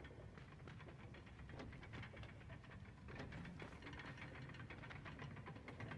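A wooden crate scrapes as it is pushed along the ground.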